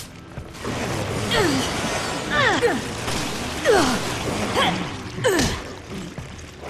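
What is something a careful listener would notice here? A creature shrieks and snarls up close.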